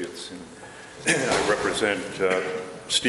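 An elderly man speaks into a microphone.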